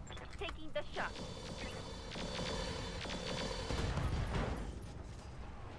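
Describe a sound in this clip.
A laser weapon fires with a loud buzzing blast.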